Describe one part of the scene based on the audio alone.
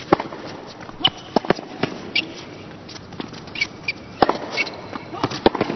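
Tennis shoes squeak on a hard court.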